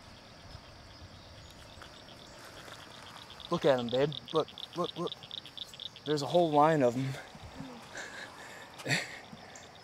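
Shallow water trickles gently over stones.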